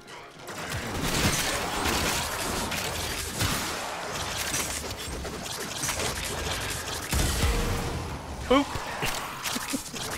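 Weapons fire and impacts clatter in a fast game fight.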